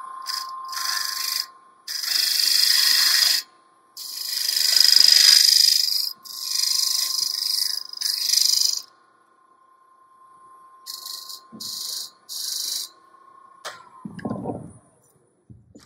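A wood lathe hums steadily, then winds down.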